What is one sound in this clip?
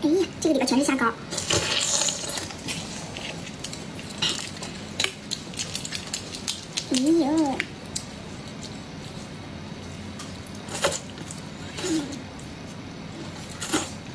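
A young woman slurps and sucks loudly.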